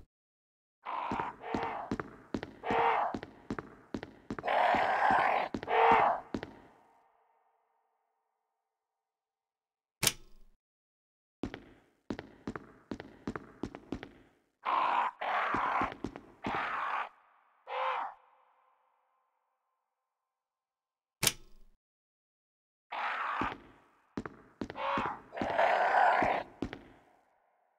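Footsteps tap quickly across a hard tiled floor.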